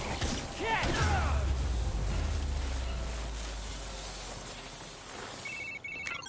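An electric blast crackles and booms, then rumbles away.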